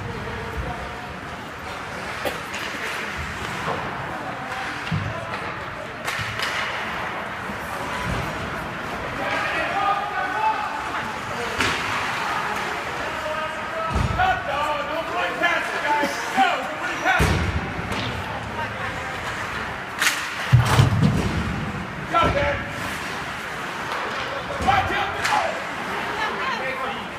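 Skates scrape and carve across ice.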